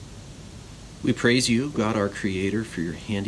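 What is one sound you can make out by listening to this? A middle-aged man speaks calmly and close by, as if into a microphone on an online call.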